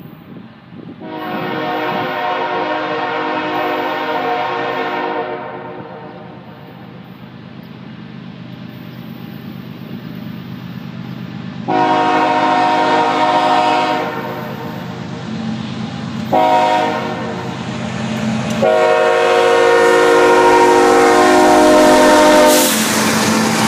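A train horn blows loudly in long blasts, drawing closer.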